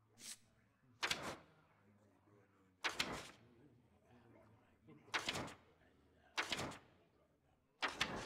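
A game's card pages flip over with short swooshes.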